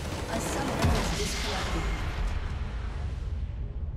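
A game structure explodes with a loud crash.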